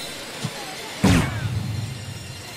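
A dart thuds into a dartboard.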